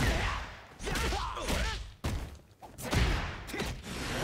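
Punches and kicks land with heavy, sharp thuds.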